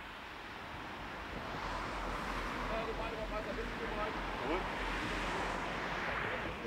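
Traffic hums on a nearby road outdoors.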